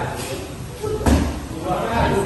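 A kick strikes a hand pad with a sharp smack.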